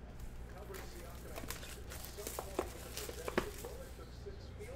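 Plastic wrap crinkles as it is torn off a box.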